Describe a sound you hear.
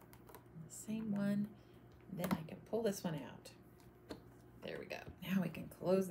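Clear plastic stamps crinkle as they are handled.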